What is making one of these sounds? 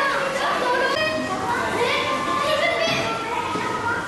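A crowd of children and adults talks and calls out.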